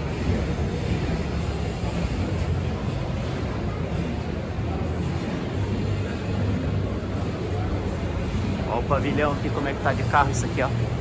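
A crowd murmurs indistinctly in a large echoing hall.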